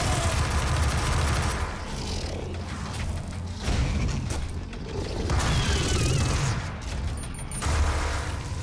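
A heavy gun fires rapid bursts of shots.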